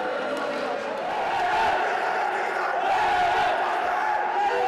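A group of young men chant together in a huddle.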